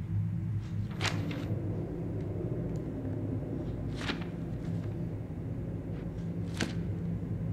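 Paper pages of a notebook turn with a soft swish.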